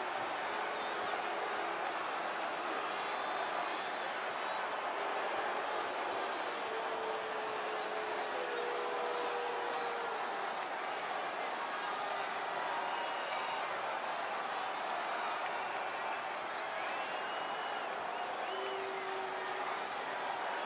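A large crowd cheers and roars in a large arena.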